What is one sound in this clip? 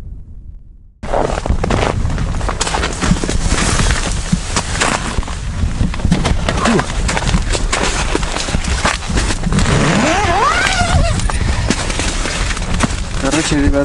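Padded clothing rustles close by.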